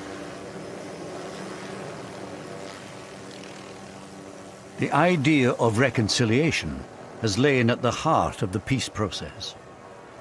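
A helicopter engine whines steadily and its rotor turns.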